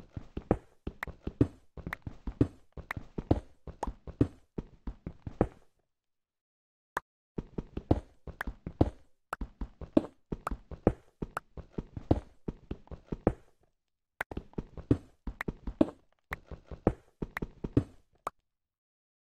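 A pickaxe strikes stone blocks in quick repeated clicks.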